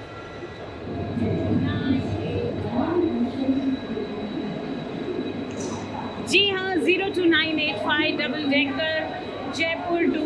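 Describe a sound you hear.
A crowd murmurs in a large echoing station hall.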